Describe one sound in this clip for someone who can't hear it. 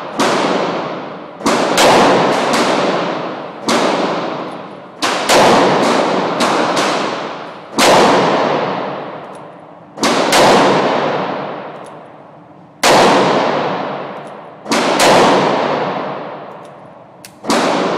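A handgun fires loud shots one after another, each ringing out through an echoing indoor range.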